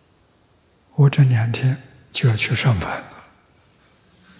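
An elderly man speaks briefly and cheerfully into a microphone.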